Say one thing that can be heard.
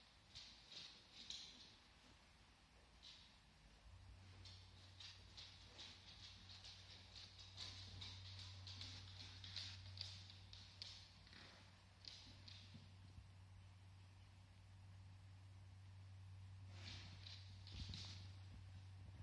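A dog's claws tap and click on a hard floor.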